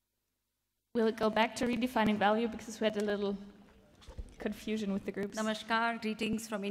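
A woman speaks calmly into a microphone over loudspeakers.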